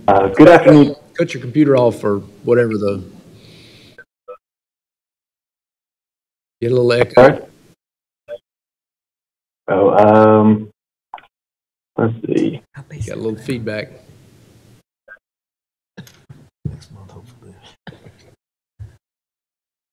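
A man speaks calmly into a microphone, reading out with pauses.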